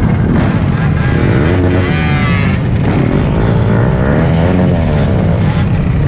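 A motorcycle engine revs, rising and falling in pitch.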